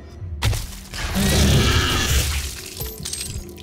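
A monster's body bursts apart in a loud, wet, crunching splatter.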